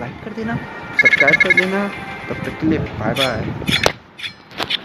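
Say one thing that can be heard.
A game chimes quickly as a cash score tallies up.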